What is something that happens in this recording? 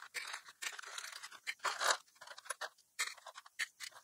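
Small plastic pieces clatter into a box.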